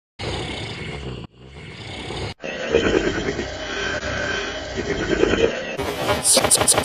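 A man snores loudly in his sleep.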